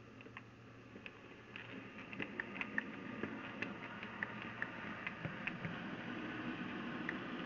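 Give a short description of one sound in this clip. Model train wheels click over rail joints.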